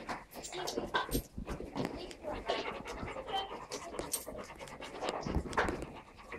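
A dog's paws scratch and rustle on a crinkly fabric bed.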